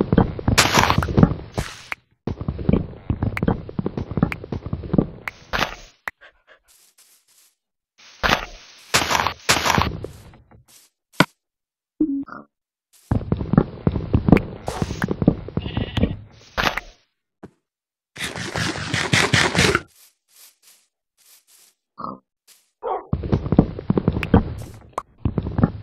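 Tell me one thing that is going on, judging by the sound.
An axe chops at wood with repeated dull knocks.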